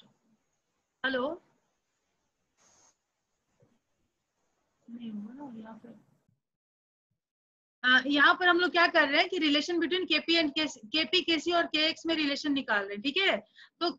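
A young woman speaks calmly into a microphone, explaining.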